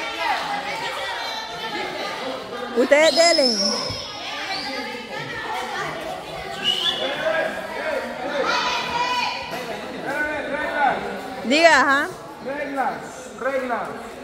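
Children and adults shout and call out loudly.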